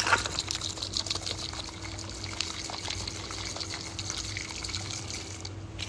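Liquid sloshes as a jar is shaken.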